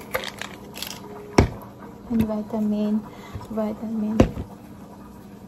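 Plastic pill bottles knock and clack against each other.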